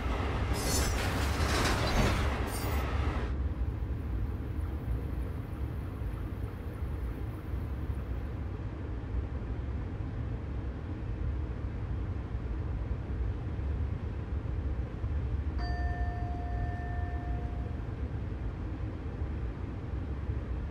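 A train rumbles low and steady as it rolls along the rails.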